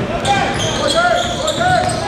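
A basketball bounces on a hard floor as a player dribbles.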